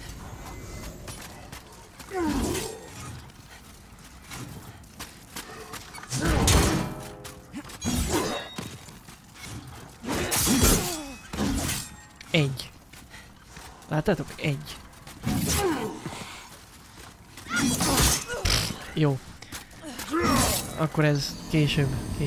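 Metal weapons clash and strike in bursts.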